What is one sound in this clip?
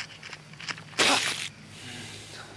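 Leaves rustle as a plant is plucked from the ground.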